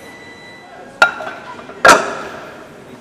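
Heavy iron weight plates clank against a barbell.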